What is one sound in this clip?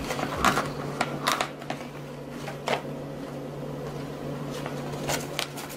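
Paper banknotes rustle and crinkle as they are handled close by.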